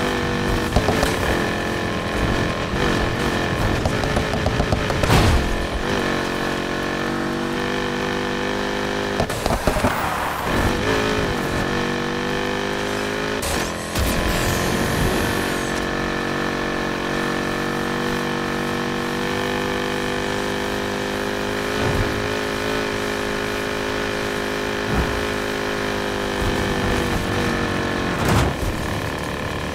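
Tyres screech while a car slides through turns.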